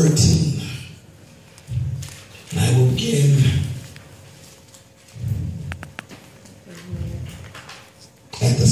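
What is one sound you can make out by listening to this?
A man speaks into a microphone, heard over a loudspeaker in an echoing room.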